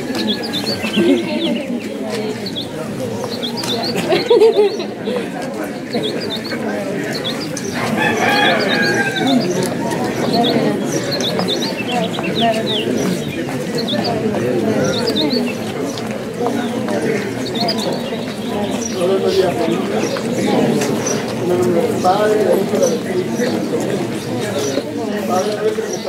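A crowd of women chatter all around, outdoors.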